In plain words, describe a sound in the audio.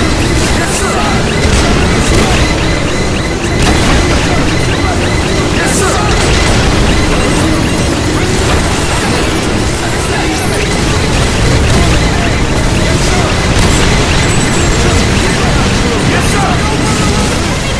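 Explosions boom and rumble loudly again and again.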